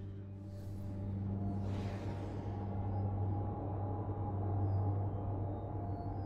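Spaceship engines roar and rush with a deep rumbling whoosh.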